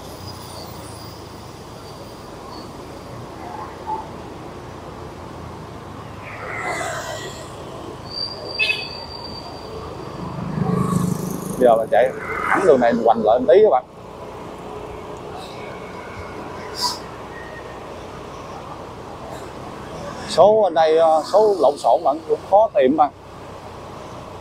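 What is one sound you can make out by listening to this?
Traffic rumbles past on a busy street.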